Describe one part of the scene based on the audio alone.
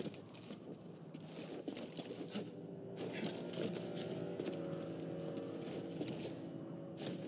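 Footsteps run quickly across stone.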